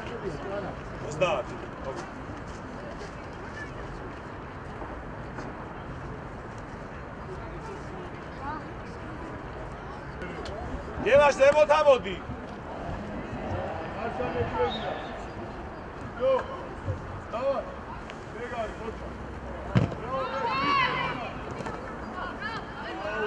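Young players shout to each other across an open outdoor pitch.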